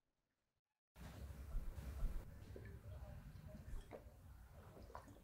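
A woman gulps from a bottle.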